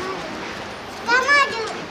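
An orca lets out a short, high, wavering whistle.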